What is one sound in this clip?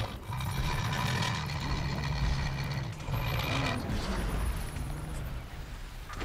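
A large machine hums and whirs with a steady electronic drone.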